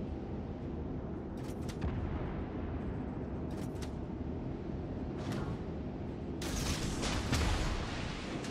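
Naval guns fire with heavy booms.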